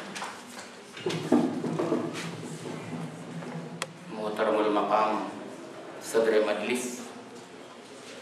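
An elderly man speaks calmly into a microphone, close by.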